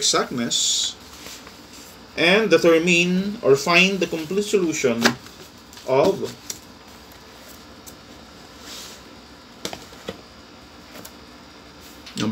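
Sheets of paper rustle and flap as they are turned.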